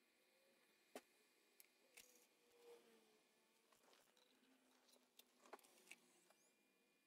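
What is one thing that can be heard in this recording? A disc tray clicks and whirs as it opens and closes.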